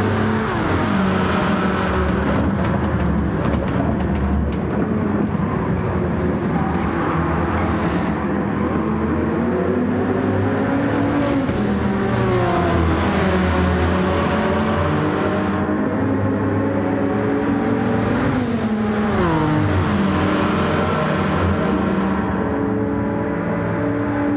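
Racing car engines roar and whine loudly as they speed by, rising and falling in pitch.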